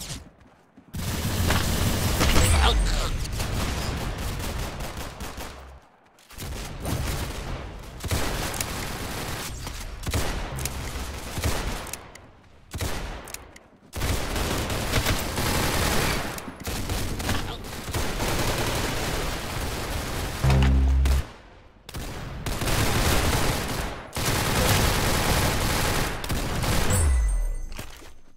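Rapid gunfire crackles from a video game.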